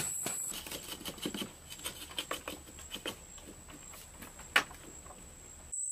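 Loose soil is scraped and shifted by hand.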